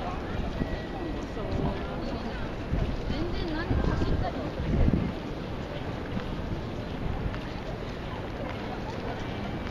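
Footsteps shuffle across pavement.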